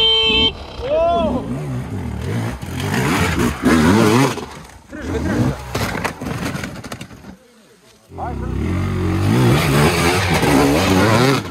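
A dirt bike engine revs hard and sputters.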